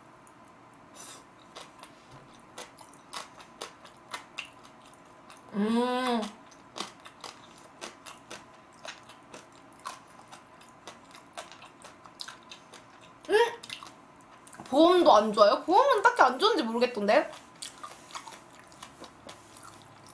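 A young woman chews food noisily and close to a microphone.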